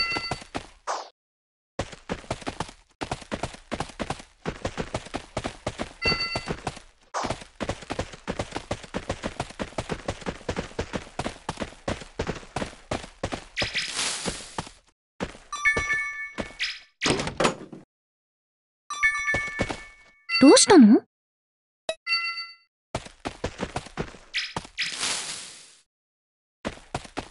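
Quick footsteps patter over grass and stone.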